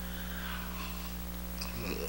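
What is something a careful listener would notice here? A middle-aged man cries out loudly.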